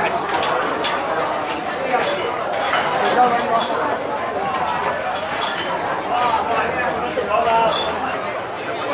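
A crowd of diners chatters loudly all around in a busy, echoing room.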